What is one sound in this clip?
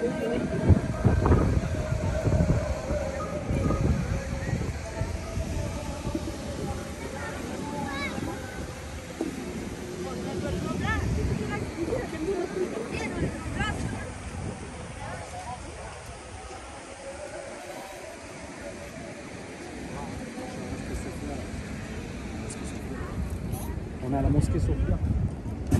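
Wind rumbles across the microphone in gusts.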